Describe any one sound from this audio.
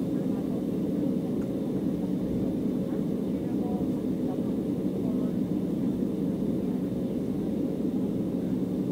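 Jet engines rumble steadily as a plane taxis, heard from inside the cabin.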